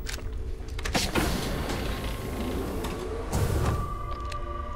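A sliding door hisses open.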